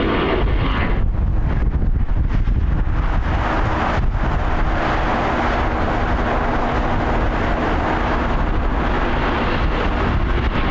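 A jet airliner's engines roar loudly as it takes off.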